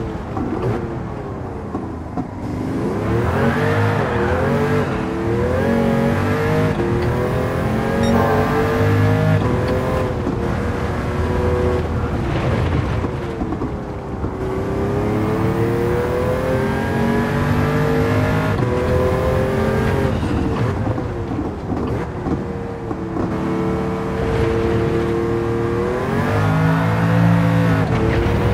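A racing car engine roars, revving up and down as the gears shift.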